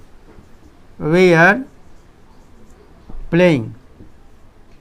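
An elderly man speaks aloud in short phrases, close by.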